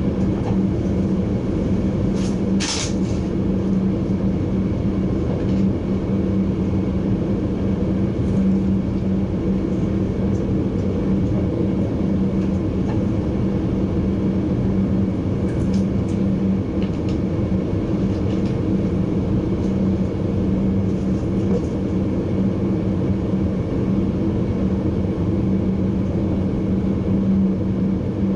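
A train rumbles steadily along the tracks with a low motor hum.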